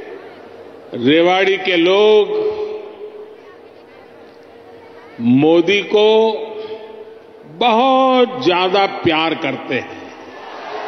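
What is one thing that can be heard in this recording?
An elderly man speaks forcefully through a microphone and loudspeakers, with pauses between phrases.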